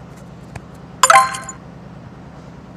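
A short electronic jingle plays as a level is completed.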